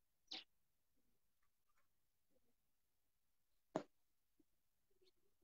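A pigeon coos softly and quietly, close by.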